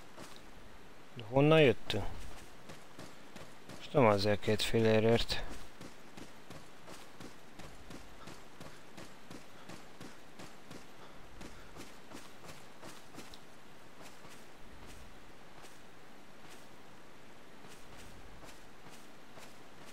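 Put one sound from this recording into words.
Footsteps crunch through dry leaves.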